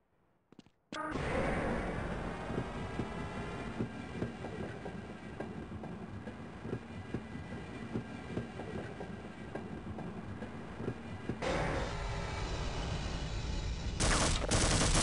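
A tram car rumbles and clatters steadily along a track.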